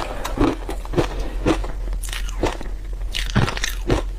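A spoon scrapes through a crumbly mass of food.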